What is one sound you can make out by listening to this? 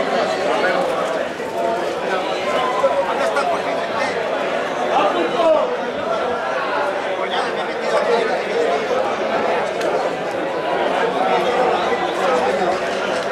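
A crowd of people shouts and chatters excitedly outdoors.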